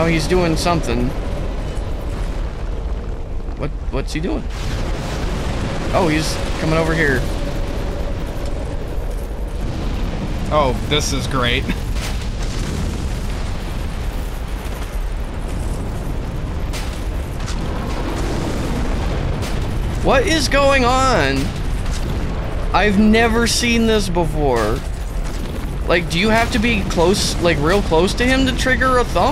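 A second man answers, talking through a headset microphone.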